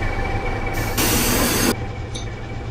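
Bus doors open with a short burst of air.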